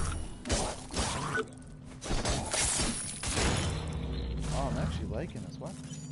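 Metal blades clash and slice with heavy impacts.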